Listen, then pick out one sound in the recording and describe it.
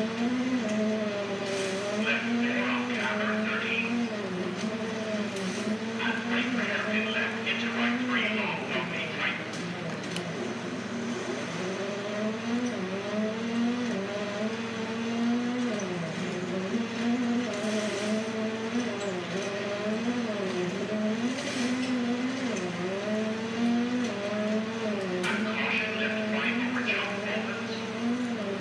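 A rally car engine revs and changes pitch as the car races along.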